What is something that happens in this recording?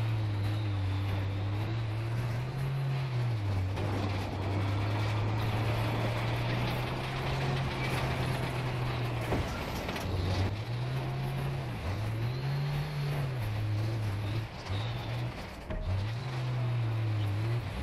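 Tank tracks clatter over rough ground.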